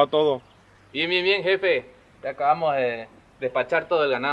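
Another young man talks into a phone with animation.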